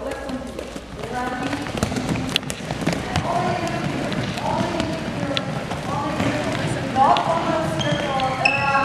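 Young women chatter and call out.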